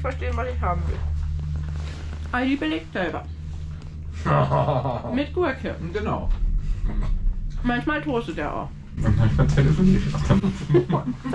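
A cable car cabin hums steadily while moving.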